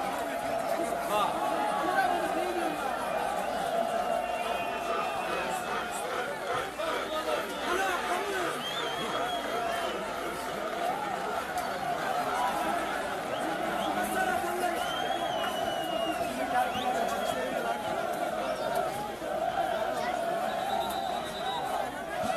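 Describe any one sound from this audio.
A football crowd chants and cheers outdoors.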